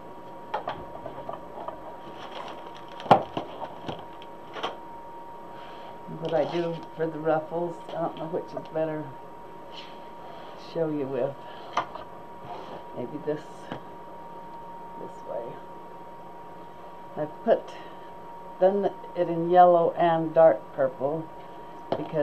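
Plastic deco mesh rustles as it is handled.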